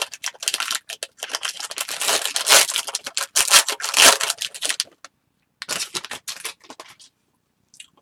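Trading cards rustle and slide against each other close by.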